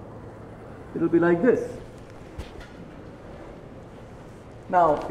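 A man speaks aloud.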